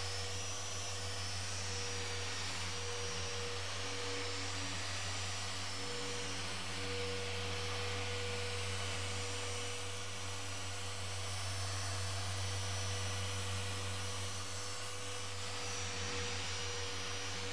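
Electric polishers whir steadily against a car's paint.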